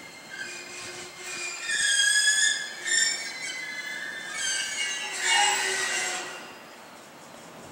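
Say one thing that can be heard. Train brakes squeal loudly as the train halts.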